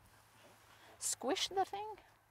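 A woman speaks outdoors to a small group, explaining with animation.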